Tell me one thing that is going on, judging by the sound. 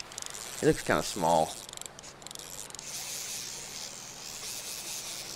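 Water splashes as a fish struggles on a line.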